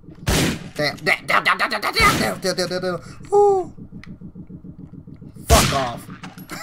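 Gunshots bang sharply in an echoing corridor.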